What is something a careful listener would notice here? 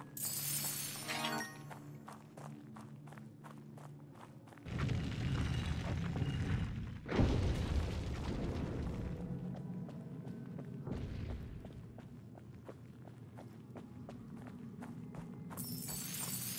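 Footsteps tap steadily on stone.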